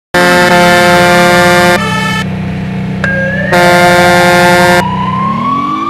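A truck horn blares loudly in two long blasts.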